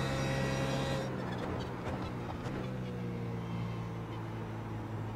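A race car engine drops in pitch as the car brakes for a corner.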